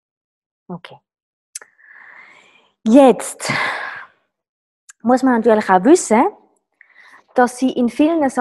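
A woman talks calmly and close to a microphone, with pauses.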